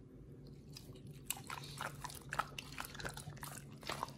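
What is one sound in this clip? A dog gnaws and tugs at a piece of raw meat with wet, chewing sounds.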